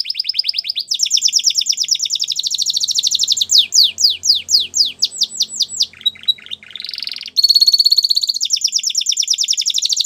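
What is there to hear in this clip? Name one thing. A canary sings close by in fast, rolling trills and whistles.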